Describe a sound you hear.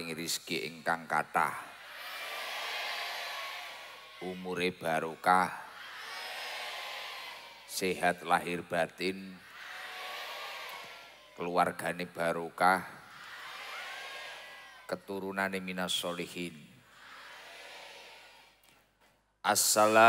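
A young man speaks forcefully in short bursts through a microphone and loudspeakers, echoing loudly around a large space.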